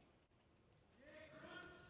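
A man speaks loudly into a microphone in a large echoing hall.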